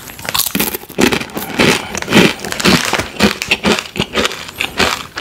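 A crinkly chip bag rustles.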